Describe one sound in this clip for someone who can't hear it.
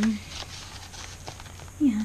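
Paper rustles softly under hands.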